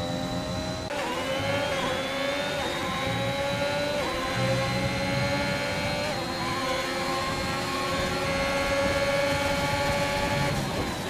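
A racing car engine screams at high revs, its pitch climbing and dropping briefly with each gear change.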